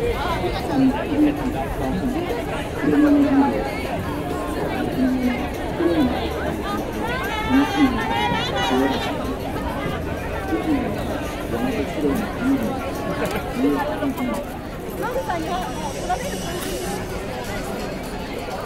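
A large crowd of men and women chatters all around outdoors.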